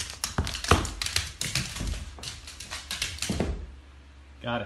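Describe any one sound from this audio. A dog's claws clatter and skitter on a wooden floor.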